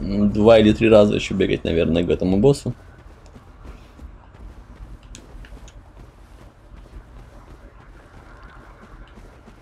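Footsteps tap softly on a hard surface.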